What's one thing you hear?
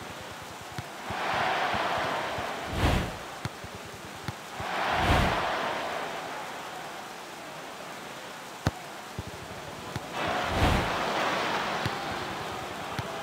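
A stadium crowd cheers in swells.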